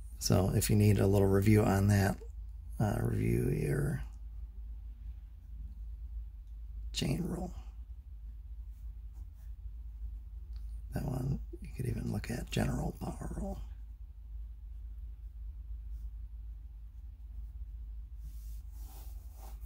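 A felt-tip pen scratches softly across paper.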